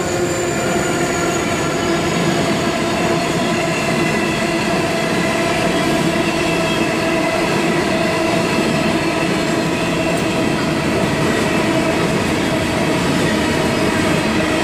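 Train wheels screech and squeal on the rails.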